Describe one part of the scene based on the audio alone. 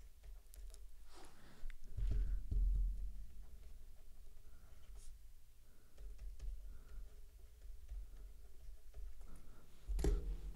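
A stylus taps and scratches faintly on a tablet.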